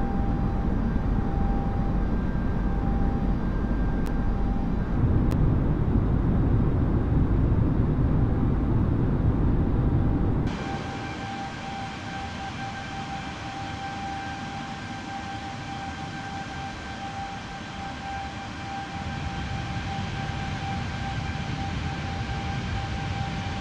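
Jet engines roar steadily with a deep rumble.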